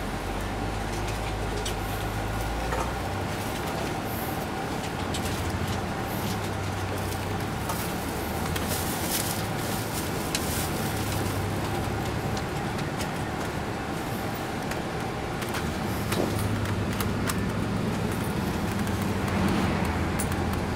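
Small rattles and knocks sound through a moving bus.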